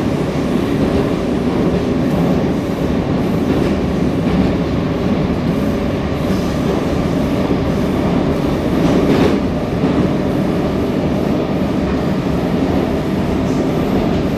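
A metro train rumbles through a tunnel at speed.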